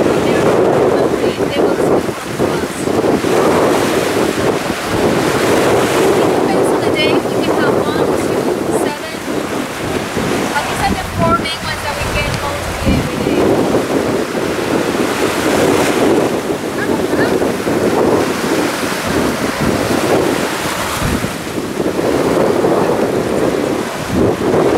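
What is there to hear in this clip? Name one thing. Small waves wash and break on a sandy shore close by.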